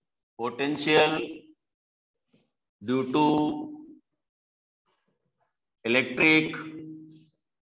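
A man speaks slowly and clearly in short phrases.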